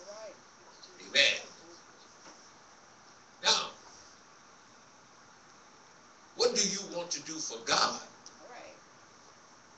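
A man speaks into a microphone in short bursts, heard through a loudspeaker in an echoing room.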